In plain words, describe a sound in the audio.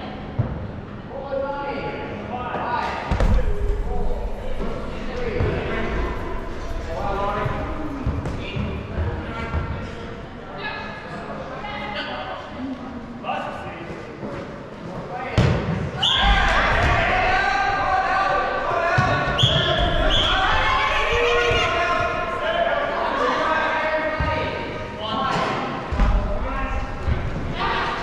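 Young players shout and call out in a large echoing hall.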